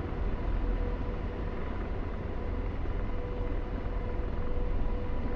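A jet engine roars steadily with a deep rumble.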